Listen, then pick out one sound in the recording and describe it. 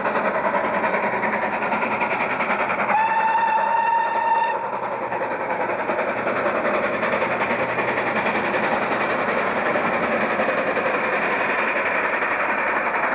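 A steam locomotive chuffs hard as it approaches along the track.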